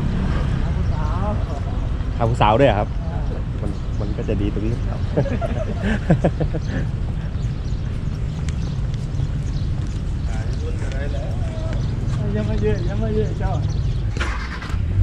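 A man talks calmly close by, outdoors.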